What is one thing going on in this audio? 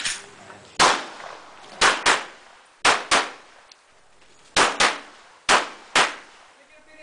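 A pistol fires loud sharp shots in quick pairs outdoors.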